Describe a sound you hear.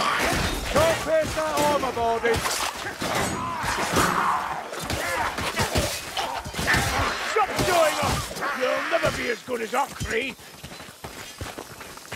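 A sword swishes through the air and strikes with sharp thuds.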